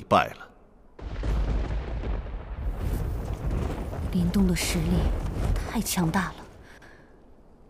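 Fire roars with a deep rumble.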